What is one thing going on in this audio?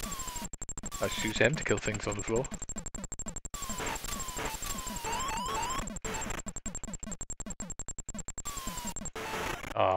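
Quick descending electronic zaps sound repeatedly.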